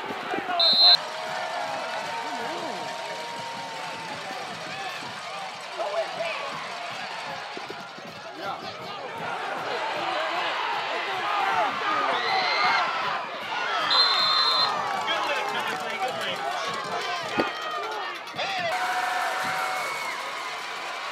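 A large crowd cheers and shouts in an open stadium.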